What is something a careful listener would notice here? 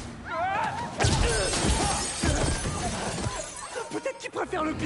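Rubble crashes and debris clatters.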